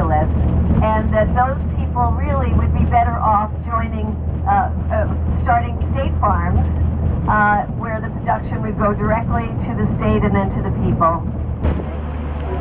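A woman speaks with animation into a microphone, heard over a loudspeaker.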